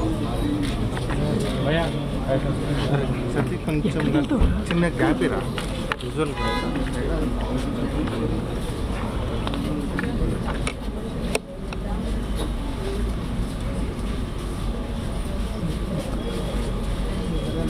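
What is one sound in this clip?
Many men talk over one another in a crowd nearby.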